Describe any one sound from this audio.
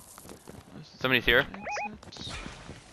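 A short bright electronic chime rings out.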